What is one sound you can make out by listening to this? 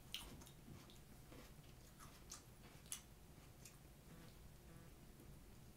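A young woman chews crunchy food close by.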